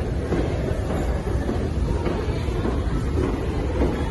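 An escalator hums and rattles as it runs.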